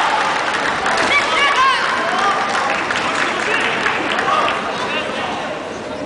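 A fighter shouts sharply in a large echoing hall.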